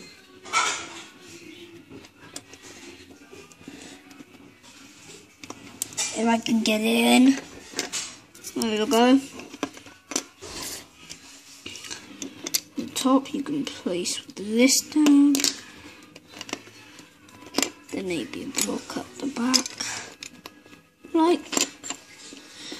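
Plastic toy bricks click and clatter as they are handled.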